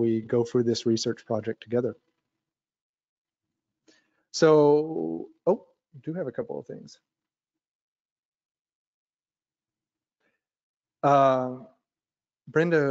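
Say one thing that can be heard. A man talks calmly through a microphone, pausing between phrases.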